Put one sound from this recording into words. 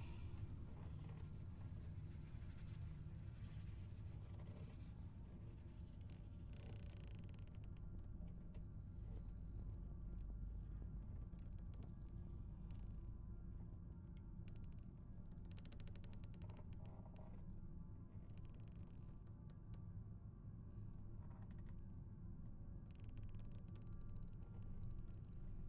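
A fluorescent light hums steadily.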